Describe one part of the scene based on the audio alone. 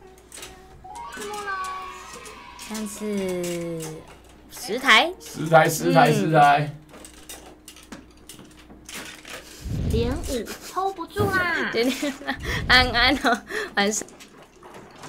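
A young woman talks and laughs with animation through a microphone.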